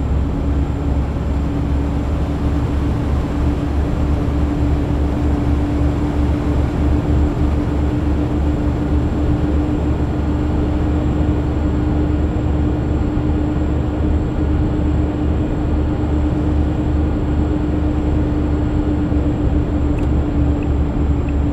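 Tyres roar on a motorway.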